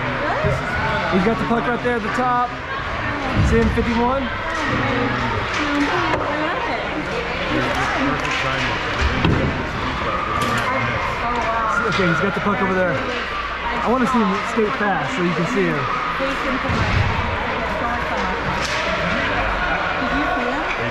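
Hockey sticks clack against the ice and a puck.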